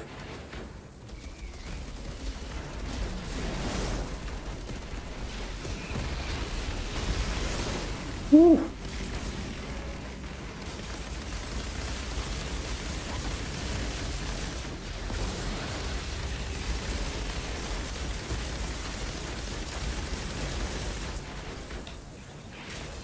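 Guns fire rapidly, with blasts and explosions.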